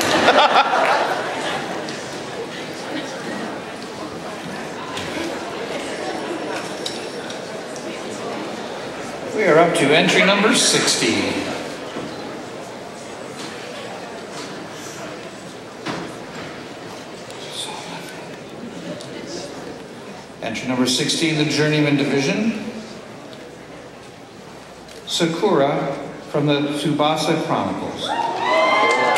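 A man speaks into a microphone over loudspeakers in a large echoing hall.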